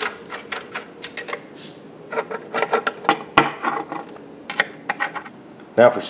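A hex key scrapes and clicks as it turns bolts into wood.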